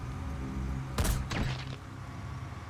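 A suppressed rifle fires a single shot.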